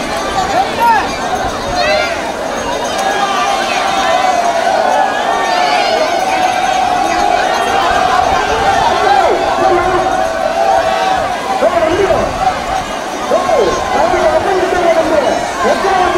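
Water splashes as many people wade through it.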